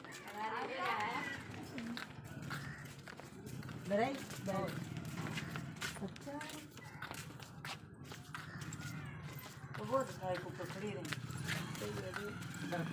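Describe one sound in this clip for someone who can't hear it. Women talk with animation close by.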